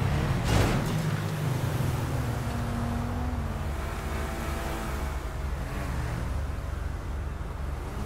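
Car tyres screech as the car drifts.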